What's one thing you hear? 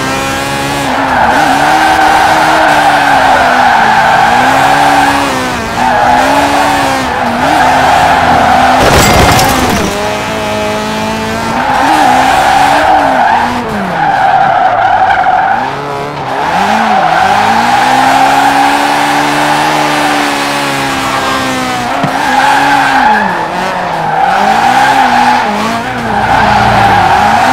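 Tyres screech and squeal as a car drifts through bends.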